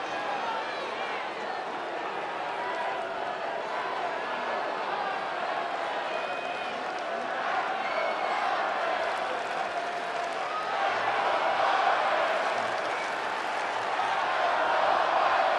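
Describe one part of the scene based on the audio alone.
A large stadium crowd murmurs and cheers steadily all around.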